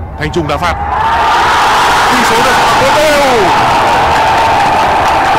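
A stadium crowd roars loudly in cheering.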